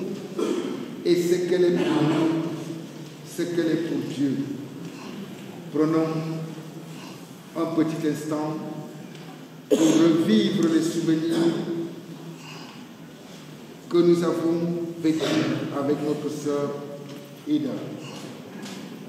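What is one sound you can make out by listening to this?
A man reads aloud slowly through a microphone, in bursts with pauses.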